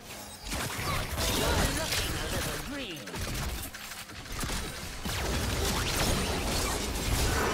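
Game spell effects crackle and whoosh in a busy battle.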